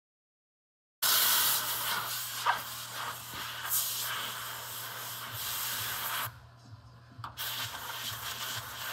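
A man rubs a car body with a sanding pad, making a steady hissing scrape.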